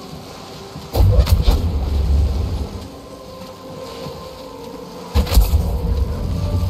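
Water crashes and surges in deep rumbling bursts.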